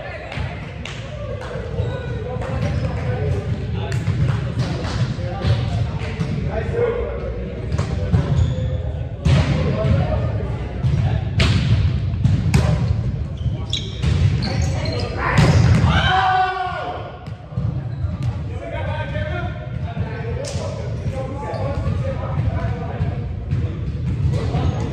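Young men call out and chatter in a large echoing hall.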